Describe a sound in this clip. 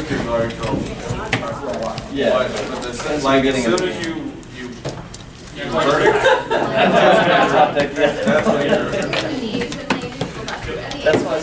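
Playing cards rustle and slide between fingers.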